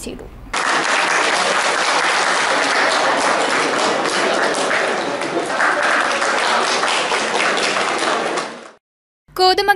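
A group of people applauds.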